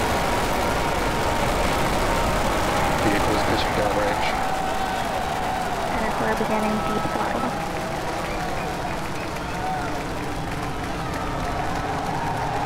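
A rocket roars with a deep, steady rumble as it climbs.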